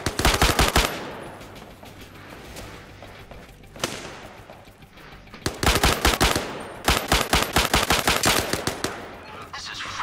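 A rifle fires rapid bursts of shots that echo.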